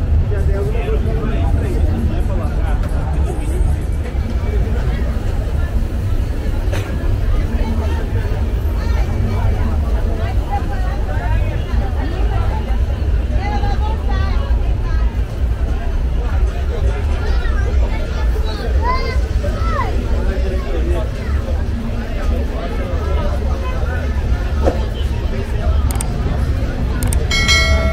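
A crowd of people chatter all around outdoors.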